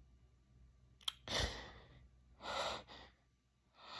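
A young man speaks close to a phone microphone, in short breathy bursts.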